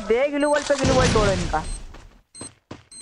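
A grenade explodes with a loud blast.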